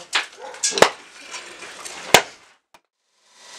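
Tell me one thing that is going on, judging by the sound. Metal tongs clink against hot metal.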